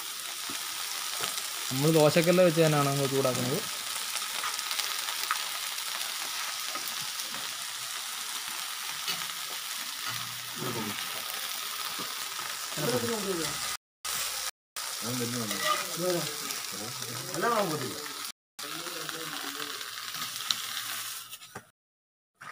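Hot leaves sizzle steadily on a griddle.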